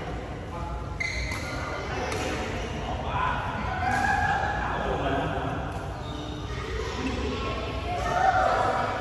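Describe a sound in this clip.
Shuttlecocks are struck with rackets in an echoing hall.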